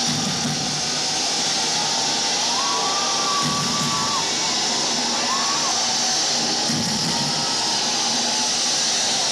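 A band plays loud, distorted live music.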